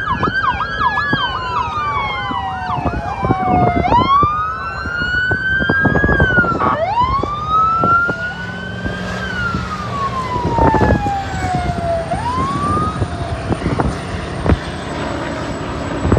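Heavy truck engines rumble past.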